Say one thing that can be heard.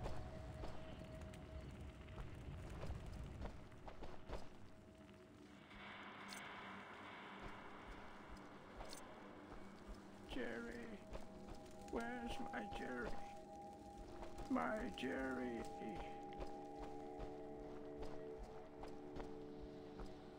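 Footsteps crunch over soft ground.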